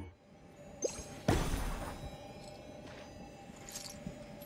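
A burst of sparkling magical whooshes rises and rings out.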